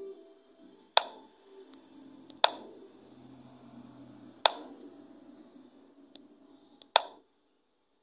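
Short, sharp clicks sound now and then as chess pieces are moved.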